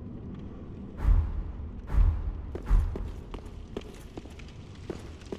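Heavy armored footsteps thud and clank on stone.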